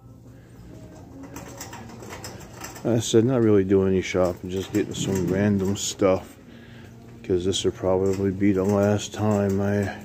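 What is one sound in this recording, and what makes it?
A shopping cart rolls across a smooth floor.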